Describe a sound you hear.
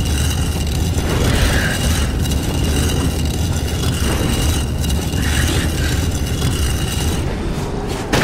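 A heavy stone block grinds and scrapes along a stone floor.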